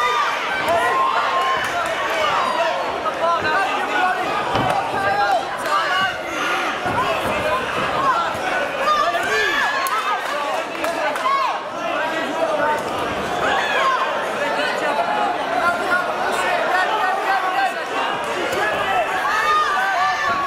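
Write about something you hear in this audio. Gloved punches and kicks thud against bodies.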